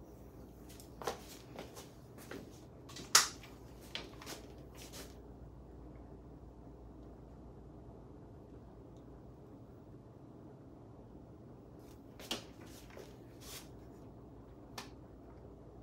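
A hair straightener clicks and clacks now and then.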